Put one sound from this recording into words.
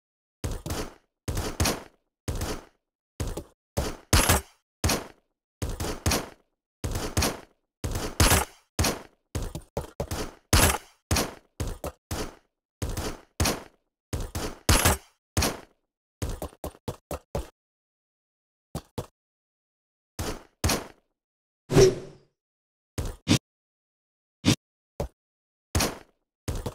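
Short video game sound effects burst out again and again as a character jumps and flies.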